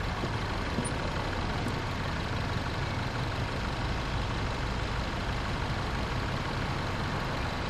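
A bus engine rumbles steadily at low speed.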